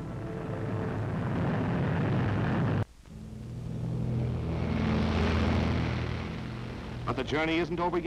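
Propeller aircraft engines roar as a bomber takes off.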